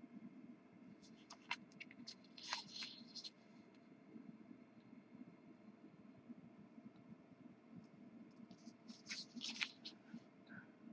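Paper rustles and shifts on a cork surface.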